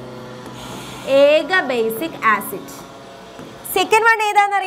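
A young woman speaks clearly, as if explaining.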